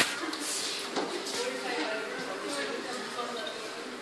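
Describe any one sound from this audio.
Men and women talk quietly at a distance in an echoing room.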